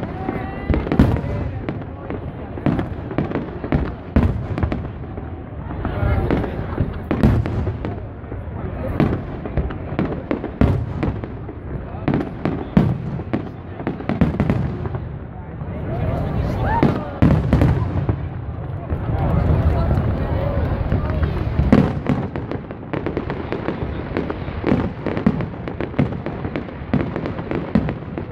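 A crowd murmurs and cheers outdoors.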